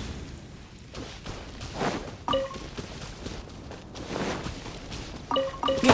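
Footsteps swish through grass.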